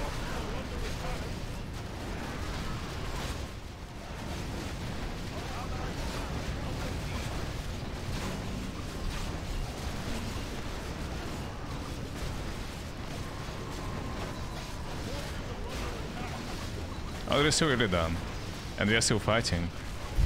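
Spells and weapons clash in a busy game battle.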